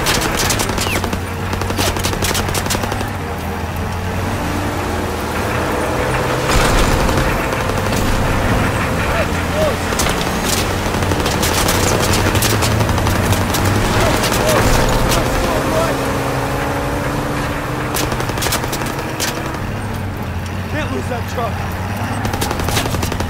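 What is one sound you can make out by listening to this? A vehicle engine rumbles steadily throughout.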